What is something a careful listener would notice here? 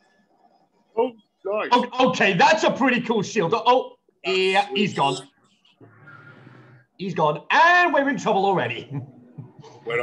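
A young man talks and laughs with animation over an online call.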